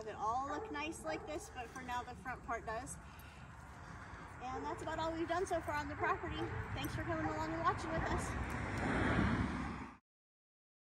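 A woman talks with animation outdoors.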